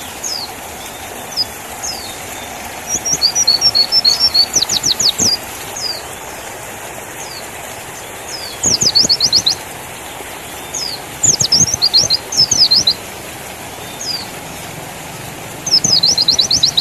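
A small bird sings loud, high chirps and rapid trills in short bursts.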